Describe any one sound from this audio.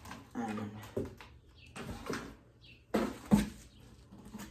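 A cardboard box rustles and thumps as it is opened.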